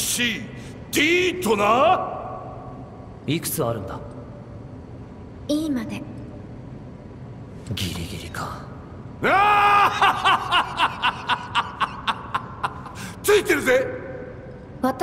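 A man speaks forcefully in a deep voice.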